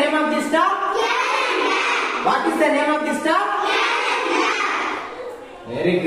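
A group of young children chant loudly in unison.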